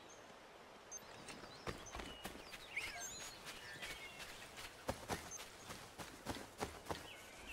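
Footsteps run on the forest floor.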